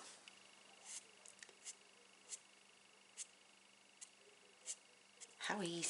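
A felt-tip pen squeaks and scratches in short strokes on paper.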